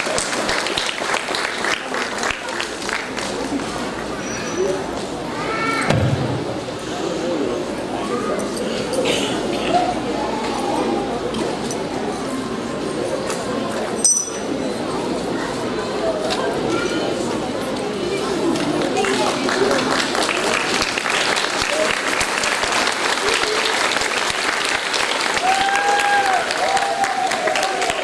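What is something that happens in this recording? A crowd of children and adults chatters and murmurs in an echoing hall.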